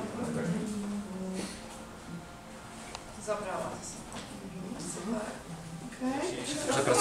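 Several women talk quietly in a room.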